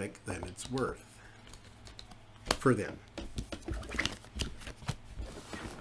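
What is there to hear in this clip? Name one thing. Playing cards slide and tap on a cloth-covered table.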